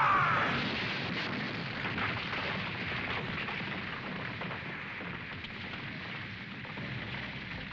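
A wall of fire roars and crackles.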